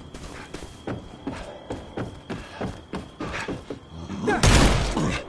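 Footsteps thump quickly on hollow wooden boards.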